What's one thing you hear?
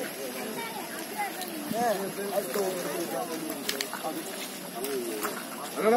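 A crowd of men and women talk excitedly close by, outdoors.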